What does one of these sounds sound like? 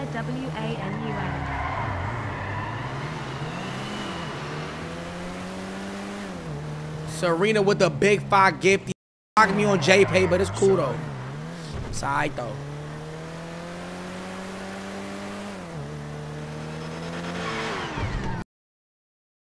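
A car engine revs and hums steadily.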